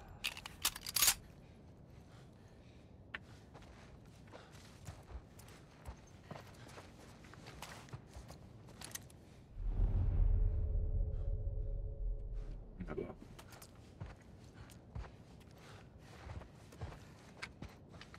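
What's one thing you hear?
Footsteps creep softly across a debris-strewn floor.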